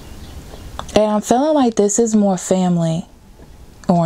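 A card is lifted and flipped over.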